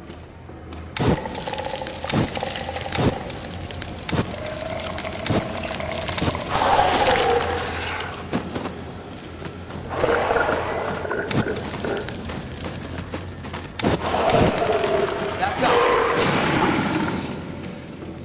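A creature groans and shrieks.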